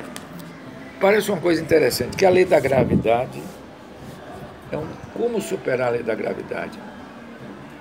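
An elderly man speaks close to a microphone with animation.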